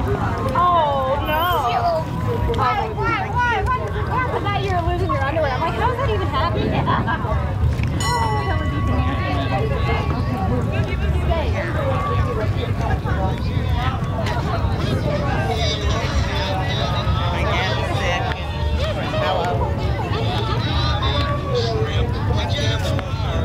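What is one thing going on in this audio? Men and women chatter outdoors.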